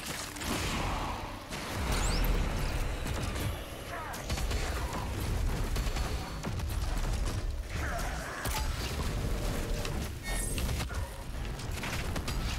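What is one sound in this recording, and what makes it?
A heavy gun fires rapid blasts.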